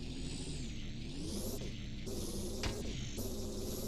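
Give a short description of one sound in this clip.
A spray gadget hisses in short bursts.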